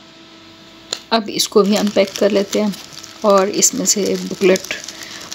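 A plastic bag crinkles as hands handle it.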